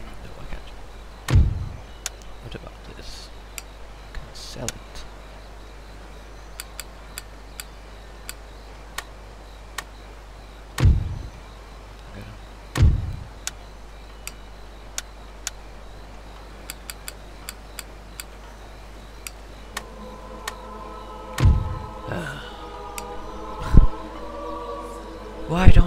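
Short game menu clicks tick now and then.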